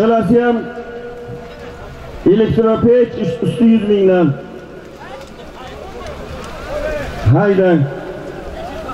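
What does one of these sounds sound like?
Men shout loudly in a crowd outdoors.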